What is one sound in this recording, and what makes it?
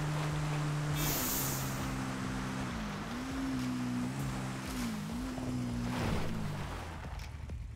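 A quad bike engine hums and revs up and down.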